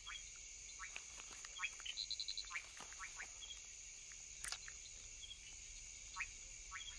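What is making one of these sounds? Small tree frogs call with short, pulsed chirps.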